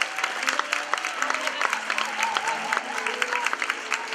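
An audience claps along rhythmically.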